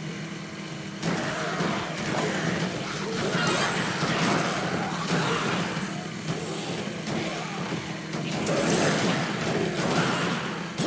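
Zombies groan and crash against a vehicle.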